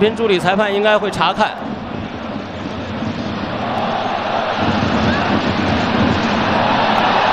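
A stadium crowd roars steadily and grows louder.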